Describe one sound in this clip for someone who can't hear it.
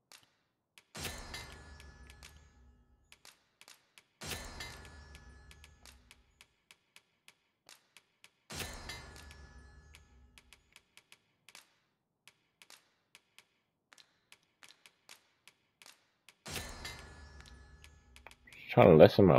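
A game crafting chime rings out and slowly fades.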